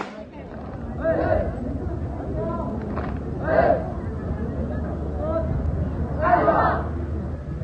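A group of children chant loudly in unison outdoors.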